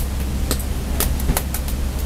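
Cooked rice tumbles from a bowl into a wok.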